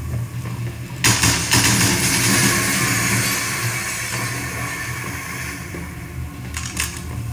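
Water bursts out with a loud rushing hiss.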